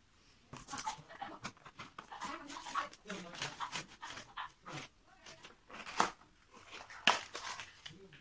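Paper and cardboard rustle and scrape as a box is handled.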